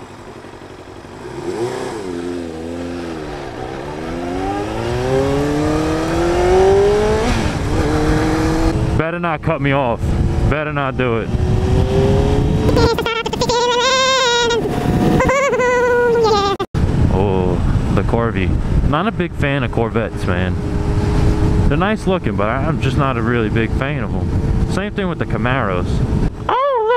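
A motorcycle engine revs up and down as it shifts through gears.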